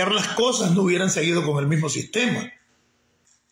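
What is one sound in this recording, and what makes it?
An elderly man speaks loudly and with animation close to a phone microphone.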